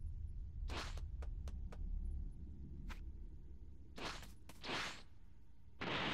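Footsteps thud quickly as a game character runs.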